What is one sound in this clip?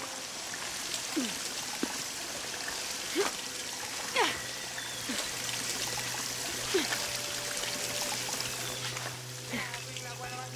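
A small waterfall splashes and pours steadily nearby.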